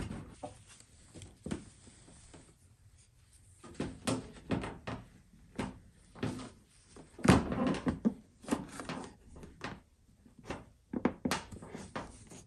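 A cloth rubs against plastic.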